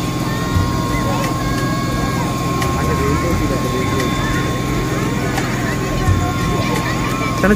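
A powerful jet of water hisses and splashes steadily.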